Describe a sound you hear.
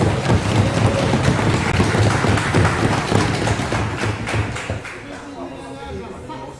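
A crowd applauds and murmurs in a large hall.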